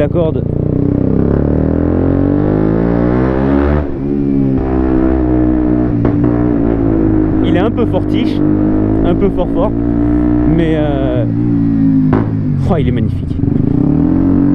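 A motorcycle engine hums and revs up and down close by.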